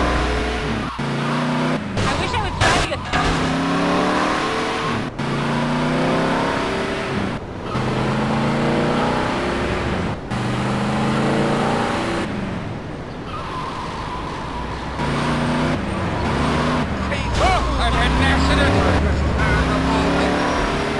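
A car engine hums as it drives along.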